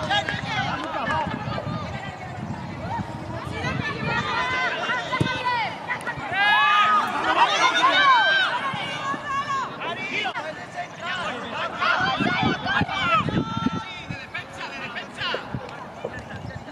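Children shout and call out loudly outdoors.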